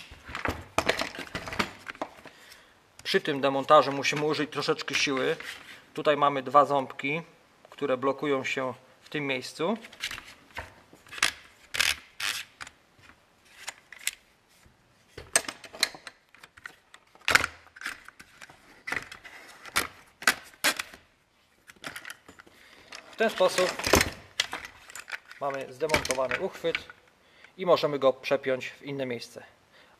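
Plastic parts click and knock together as they are handled.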